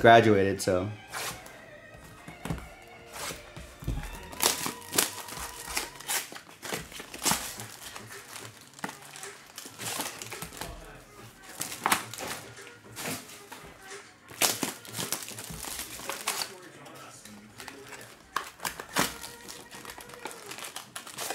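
Cardboard rips and tears as a box is opened.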